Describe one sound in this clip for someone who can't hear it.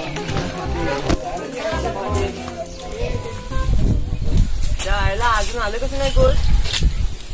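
Young men talk nearby outdoors.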